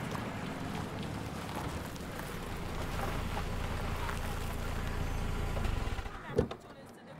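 A car engine rumbles nearby.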